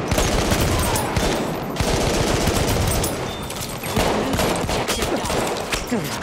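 A gun fires in rapid bursts, echoing in a tunnel.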